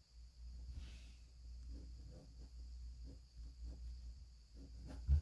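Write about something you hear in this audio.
A pen scratches softly across paper.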